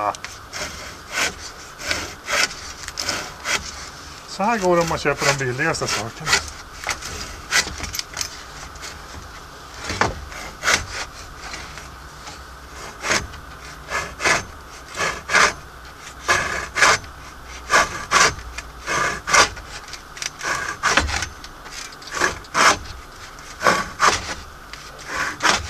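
A hand saw cuts through wood in short, rhythmic strokes.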